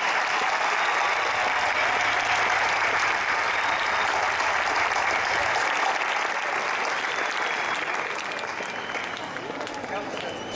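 A large outdoor crowd applauds steadily, then the clapping fades away.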